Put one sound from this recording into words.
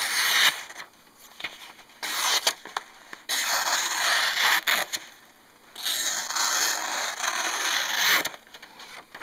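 A sharp knife slices through paper with a crisp rasping sound.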